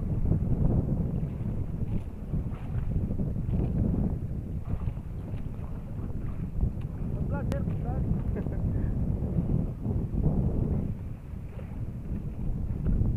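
Water rushes against a moving boat's hull.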